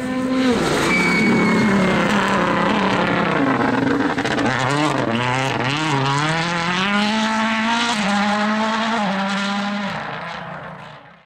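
A rally car engine roars loudly, revving up and dropping as gears change while the car speeds past.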